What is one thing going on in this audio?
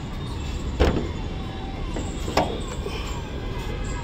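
A car's hood thumps as it is lifted open.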